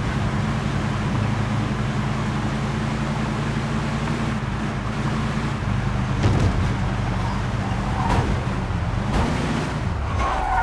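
A car engine hums steadily as it drives along.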